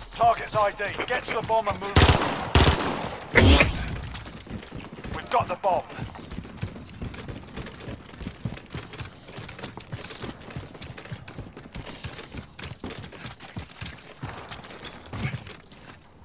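Footsteps thud on dirt as soldiers run.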